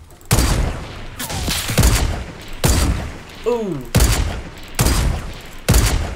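A rifle fires sharp, booming shots again and again.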